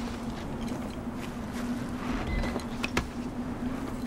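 A spear strikes a body with a thud.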